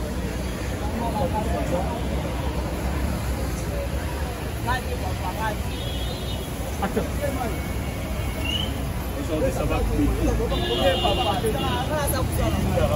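Young men talk nearby outdoors.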